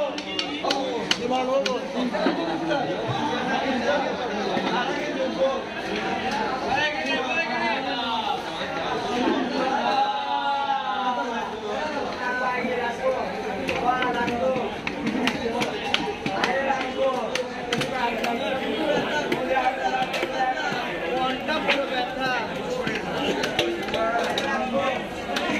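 A heavy knife chops through fish on a wooden block with sharp knocks.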